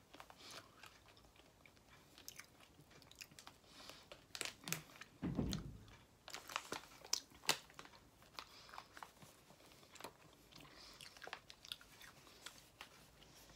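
A plastic snack bag crinkles and rustles close by.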